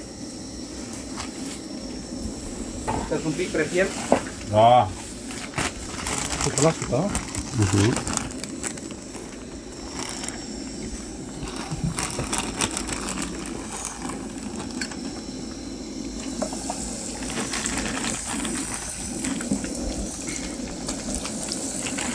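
Hot oil sizzles in a pan, growing louder and crackling as food drops in.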